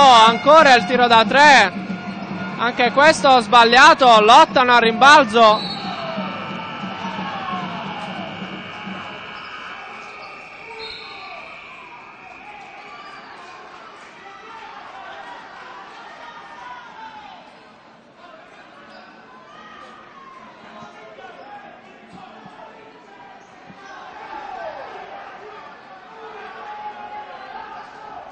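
A crowd in an echoing sports hall cheers and shouts.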